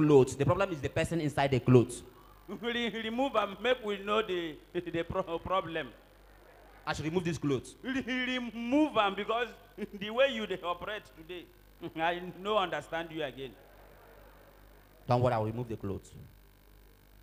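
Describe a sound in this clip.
A man speaks animatedly through a microphone on a stage.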